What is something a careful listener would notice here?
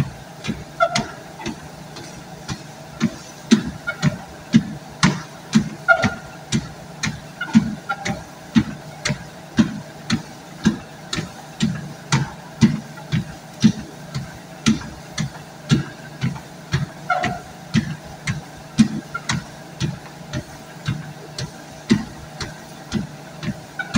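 A treadmill motor hums steadily.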